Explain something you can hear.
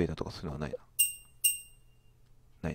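Short, bright electronic menu chimes ring out twice.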